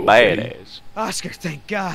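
A man talks in a low, tired voice.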